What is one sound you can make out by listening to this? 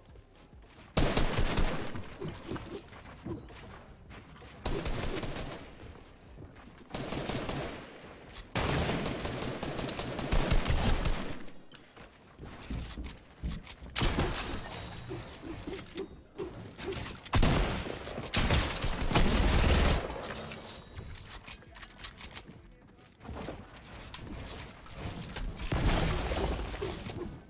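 Guns fire in sharp, rapid bursts.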